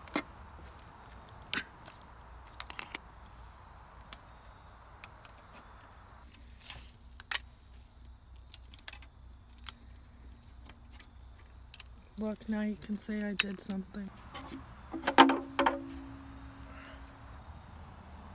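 Metal engine parts clink and knock as they are handled.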